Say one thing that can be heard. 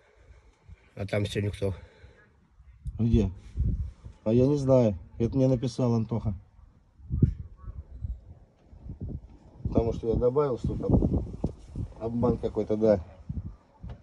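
A man talks close by in a casual, lively way.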